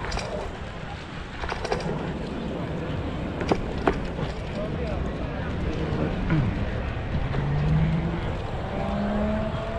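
Wind rumbles against a moving microphone outdoors.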